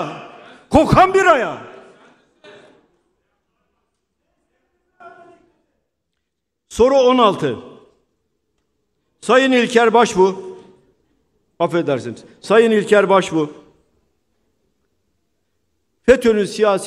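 An elderly man speaks forcefully into a microphone in bursts, with pauses between phrases.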